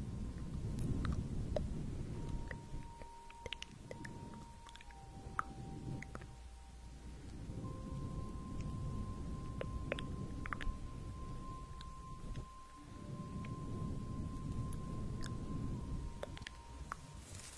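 Hands rustle and swish close over a fluffy microphone.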